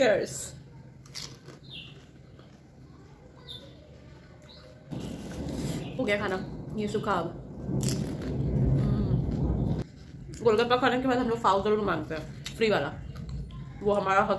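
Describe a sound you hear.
A young woman crunches on food while chewing.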